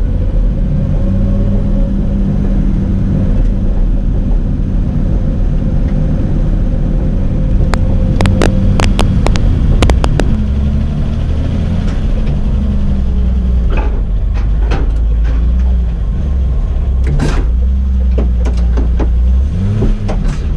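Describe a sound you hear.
A car engine drones loudly from inside the cabin, rising and falling in pitch.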